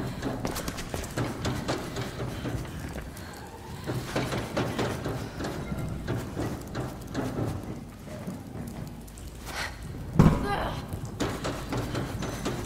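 Quick footsteps clang on a metal walkway.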